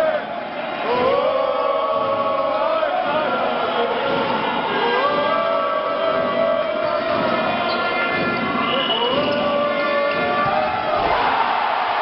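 A crowd sings chants in a large echoing hall.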